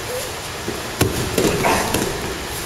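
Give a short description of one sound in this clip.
Bodies thud onto a mat in a takedown.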